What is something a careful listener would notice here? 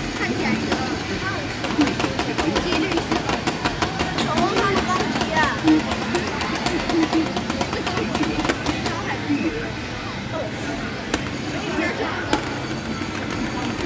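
Video game music plays through a loudspeaker.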